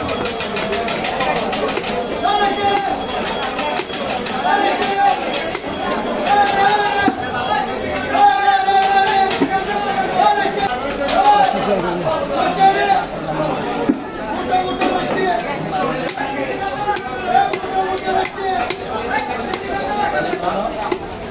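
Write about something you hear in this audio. A heavy knife chops through fish onto a wooden block.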